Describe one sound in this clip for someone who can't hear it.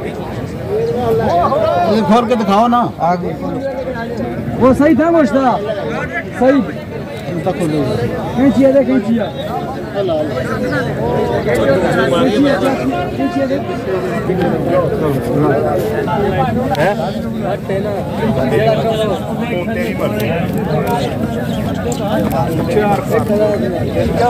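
A crowd murmurs outdoors in the background.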